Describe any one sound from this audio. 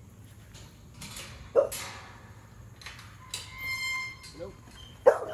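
A metal kennel gate latch clanks and rattles.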